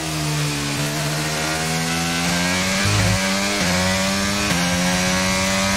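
A racing car engine screams at high revs, rising in pitch and dropping briefly with each gear change.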